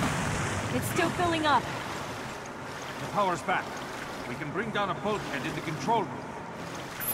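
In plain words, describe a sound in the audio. A man speaks calmly at close range.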